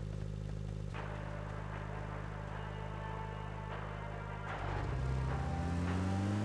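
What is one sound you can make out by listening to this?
A car engine hums and revs.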